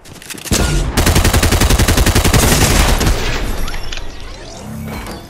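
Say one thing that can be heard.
A gun fires rapid shots in a fast rattling burst.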